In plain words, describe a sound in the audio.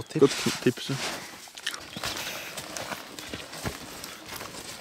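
Footsteps crunch on dry ground and brush through undergrowth.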